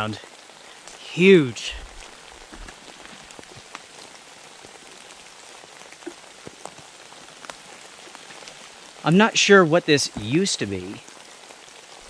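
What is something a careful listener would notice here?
A man speaks with animation, close to the microphone.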